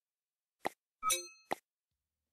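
A bright electronic chime plays.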